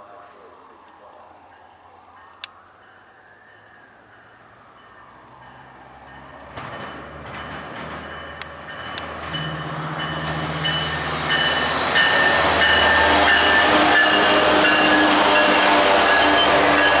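A diesel locomotive engine rumbles louder as a train approaches and passes close by.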